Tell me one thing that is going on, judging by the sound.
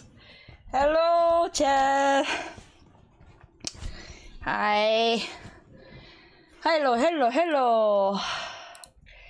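A young woman sings in short, high phrases close to a microphone.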